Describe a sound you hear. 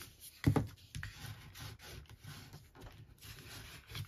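A bone folder scrapes along a paper crease.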